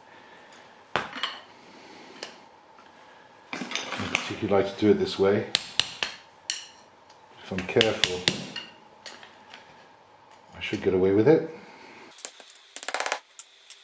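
Metal tool parts clink and tap together.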